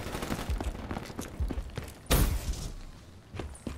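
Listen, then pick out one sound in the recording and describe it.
Gunshots fire in rapid bursts with heavy booms.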